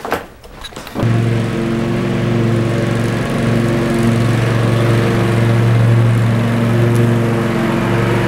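A riding lawn mower engine hums steadily.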